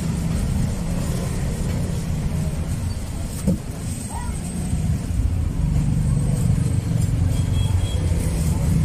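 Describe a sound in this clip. Street traffic rumbles steadily in the background.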